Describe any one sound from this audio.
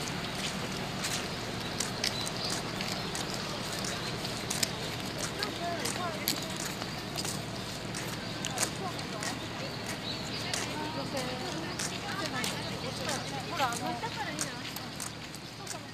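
Footsteps tap on wet pavement close by.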